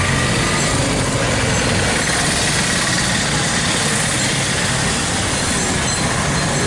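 A hand-cranked blower whirs steadily.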